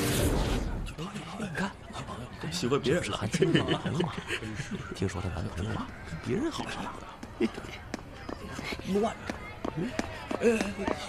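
Young men whisper and talk quietly nearby.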